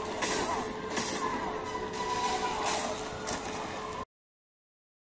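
Game explosions and crashes roar loudly.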